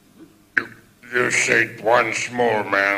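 A man speaks theatrically into a microphone.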